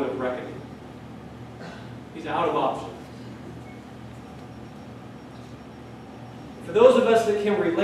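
A man speaks calmly into a microphone in a large echoing room, with pauses.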